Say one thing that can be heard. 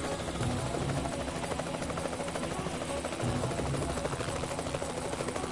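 A helicopter's rotor thumps steadily.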